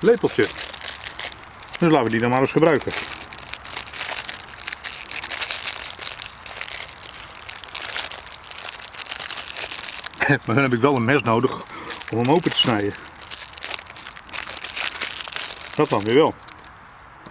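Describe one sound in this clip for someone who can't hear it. A plastic packet crinkles and tears.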